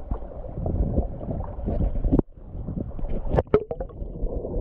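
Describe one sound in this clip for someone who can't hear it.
Water splashes and ripples over stones in a shallow stream.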